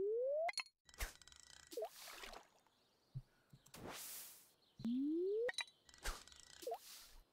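A lure plops into water with a splash.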